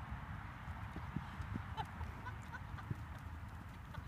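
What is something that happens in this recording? A horse's hooves thud softly on sand, drawing closer.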